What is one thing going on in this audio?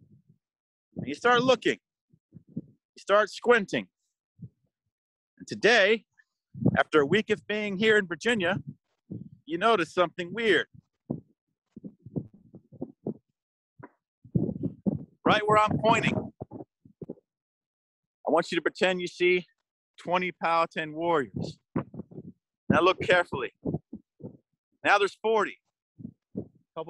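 A man speaks calmly close to the microphone, in short phrases with pauses.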